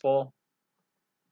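An elderly man says a few words over an online call.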